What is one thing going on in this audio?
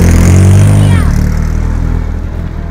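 A race car drives away and fades into the distance.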